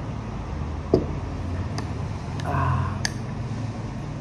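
A spoon clinks against a glass cup.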